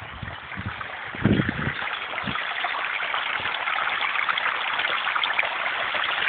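A small water wheel splashes as it turns in the water.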